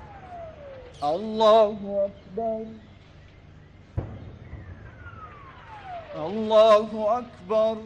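A man chants loudly through a loudspeaker outdoors, in long drawn-out phrases.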